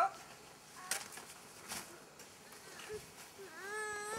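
A snow shovel scrapes through snow.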